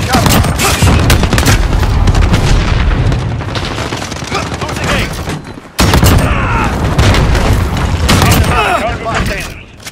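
Gunshots fire in loud rapid bursts.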